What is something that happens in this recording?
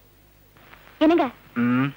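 A woman cries out loudly nearby.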